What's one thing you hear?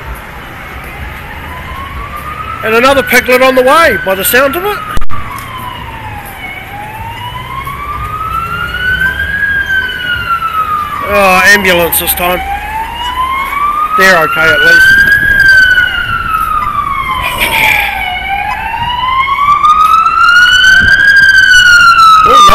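A police siren wails, rising and falling over and over, close by.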